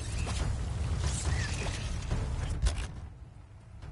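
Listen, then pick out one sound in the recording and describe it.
Heavy thuds and rumbling come from a fight.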